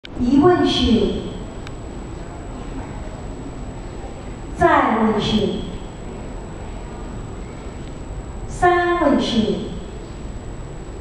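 A group of people chants together in a large echoing hall, in three long calls.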